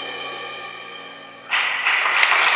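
A cello and an electric guitar hold a final chord that slowly fades in a large echoing hall.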